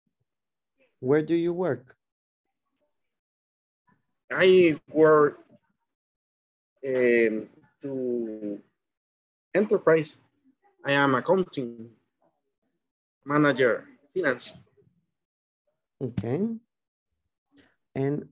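A middle-aged man speaks calmly in short phrases with pauses, heard through an online call.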